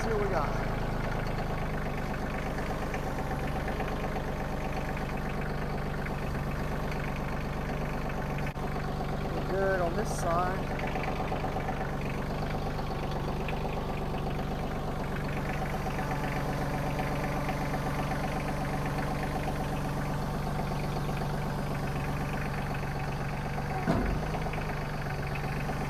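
A three-cylinder compact diesel tractor chugs as it drives slowly.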